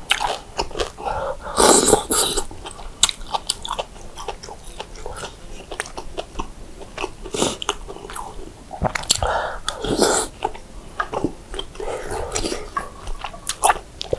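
A metal spoon clinks against a glass dish.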